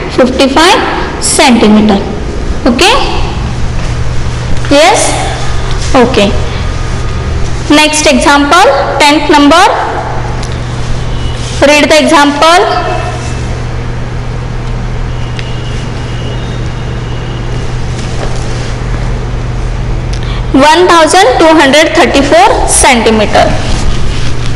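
A woman speaks in a teaching manner, close by.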